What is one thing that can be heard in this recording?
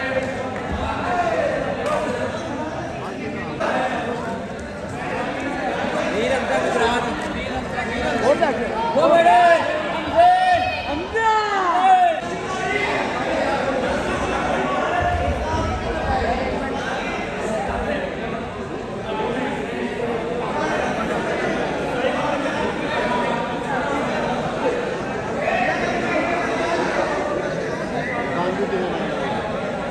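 A crowd of men talks and shouts nearby.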